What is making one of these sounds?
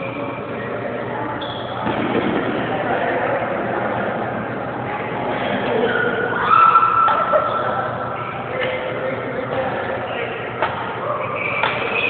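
Badminton rackets hit shuttlecocks with sharp pops in a large echoing hall.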